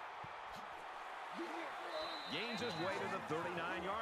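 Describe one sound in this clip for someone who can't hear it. Football players collide in a tackle with a thud.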